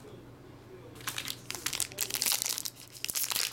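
A foil wrapper crinkles and tears loudly close by.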